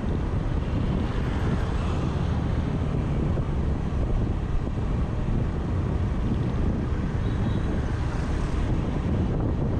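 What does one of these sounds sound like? Another motorbike passes close by.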